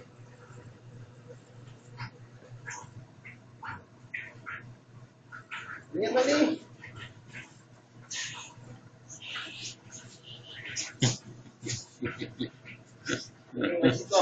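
A puppy's paws patter on concrete.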